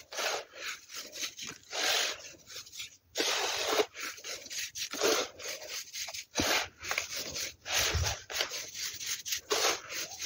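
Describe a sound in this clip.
Fine sand trickles and pours from fingers in soft hisses.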